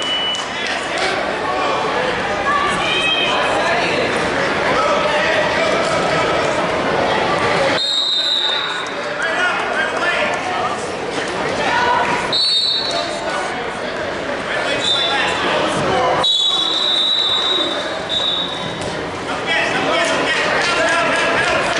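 A crowd of spectators chatters and shouts throughout, echoing in a large hall.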